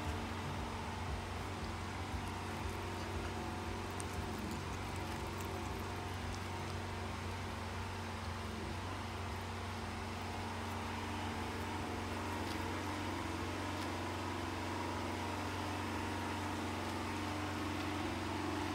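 A porcupine chews and gnaws on food up close.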